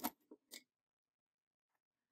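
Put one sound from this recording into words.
A card rustles softly as it is set down.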